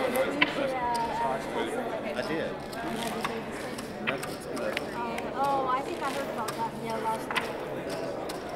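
A woman speaks casually nearby.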